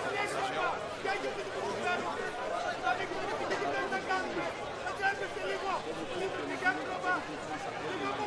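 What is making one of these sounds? A crowd of spectators chatters and cheers in an open-air stand.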